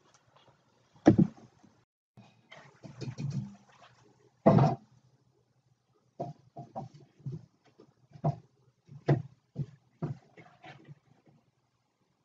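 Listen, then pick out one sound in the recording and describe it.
A metal plate clanks and knocks against wood.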